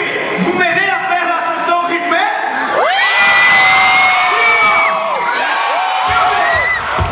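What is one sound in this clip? A crowd screams and cheers.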